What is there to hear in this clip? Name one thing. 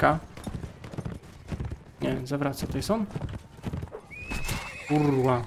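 Horse hooves thud in a steady gallop.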